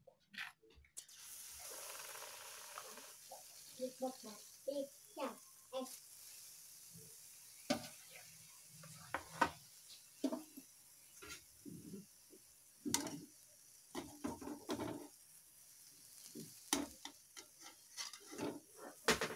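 An egg sizzles and crackles in hot oil.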